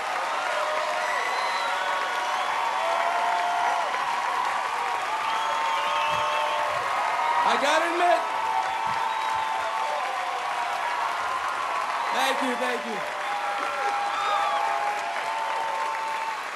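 A large crowd cheers and whistles loudly throughout.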